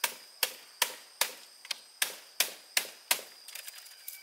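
Bamboo knocks sharply against bamboo in quick, steady blows.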